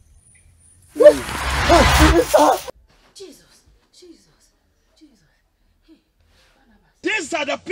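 A woman cries out loudly close by.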